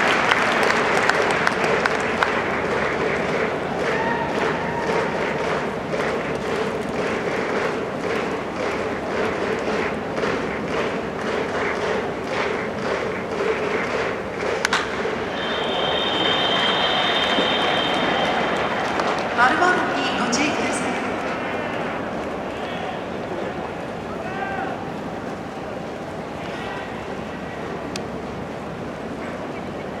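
A large crowd cheers steadily in a big echoing stadium.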